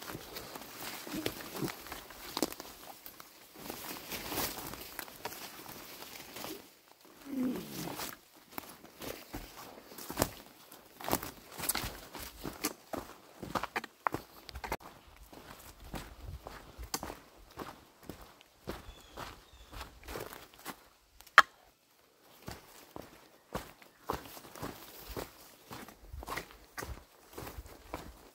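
Footsteps crunch on a dirt trail.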